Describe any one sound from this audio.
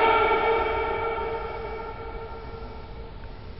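A man lets out a long loud shout that echoes and fades in a large hall.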